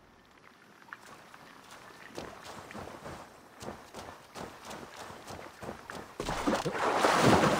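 Footsteps crunch on wet ground.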